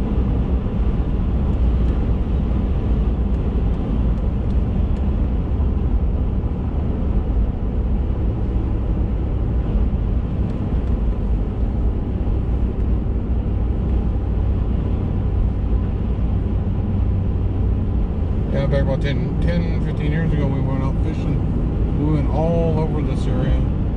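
Tyres rumble low and steady on the road.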